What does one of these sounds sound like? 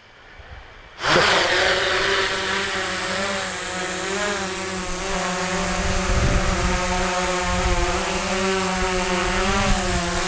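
A small drone's propellers whine and buzz steadily as it lifts off and hovers nearby.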